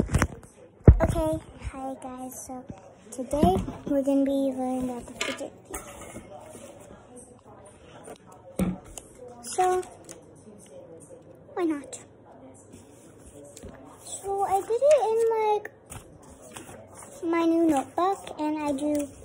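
A young girl talks animatedly close to a phone microphone.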